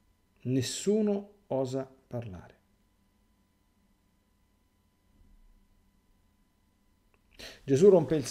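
A middle-aged man speaks calmly and slowly close to a microphone, pausing between phrases.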